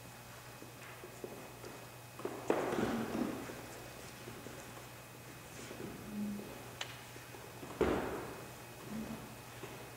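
A piano plays chords that ring out in a large, echoing hall.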